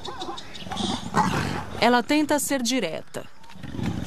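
A leopard snarls and growls.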